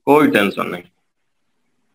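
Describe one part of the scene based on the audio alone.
A man speaks briefly up close.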